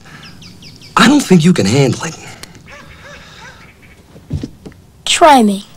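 A boy talks with attitude up close.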